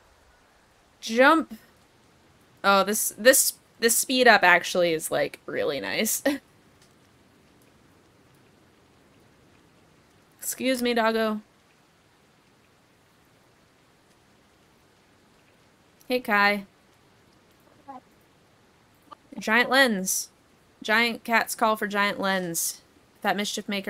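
A young woman talks with animation close to a microphone, in bursts with pauses.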